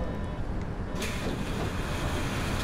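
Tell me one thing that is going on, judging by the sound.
Pneumatic bus doors hiss open.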